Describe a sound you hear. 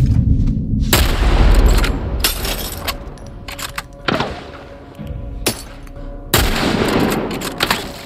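A rifle fires loud shots that echo in a large hall.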